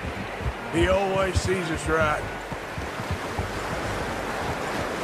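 Horses wade and splash through a shallow stream.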